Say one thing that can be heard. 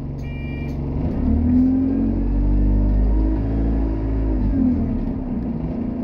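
A bus engine revs up and then settles as the bus pulls away.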